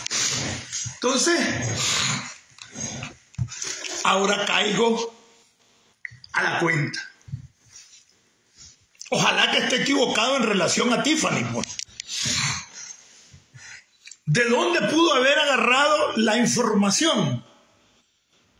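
A middle-aged man talks with animation close to a phone microphone.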